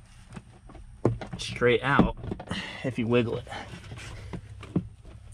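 A plastic glove box lid clicks open.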